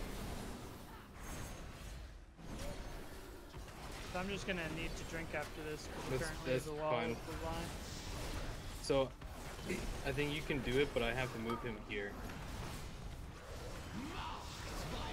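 Spell effects whoosh and crackle in a game battle.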